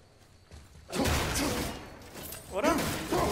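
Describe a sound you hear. A wooden crate smashes and splinters apart.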